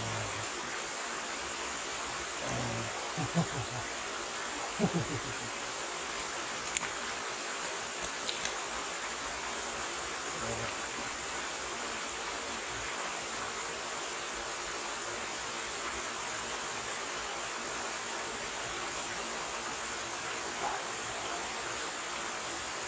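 A stream flows and babbles steadily nearby.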